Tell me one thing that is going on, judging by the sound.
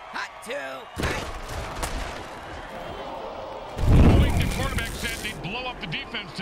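Armoured players crash together in a heavy tackle.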